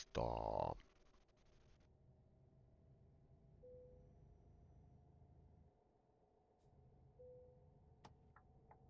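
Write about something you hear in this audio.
A truck engine hums low and steadily.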